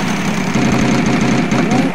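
A prize wheel clicks rapidly as it spins.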